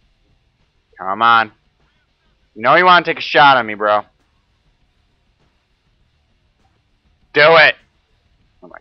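A young man speaks in short bursts, close to a microphone.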